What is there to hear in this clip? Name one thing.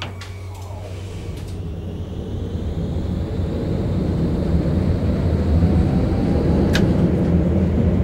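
A tram's electric motor whines, rising in pitch.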